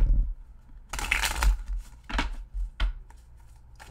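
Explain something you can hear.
Playing cards riffle and snap as they are shuffled close by.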